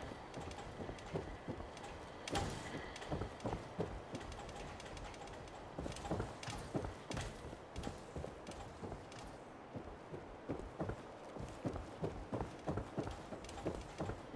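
Heavy metal footsteps clank steadily across a hard floor.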